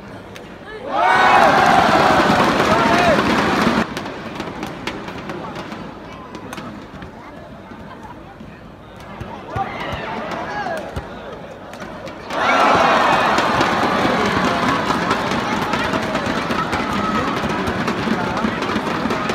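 Spectators in the hall shout and chatter loudly.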